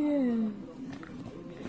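A young boy squeals with laughter close by.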